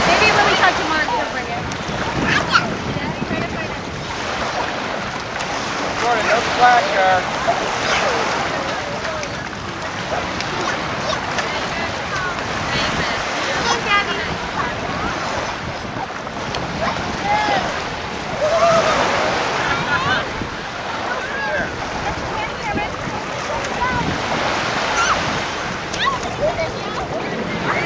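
Children and adults talk and shout at a distance.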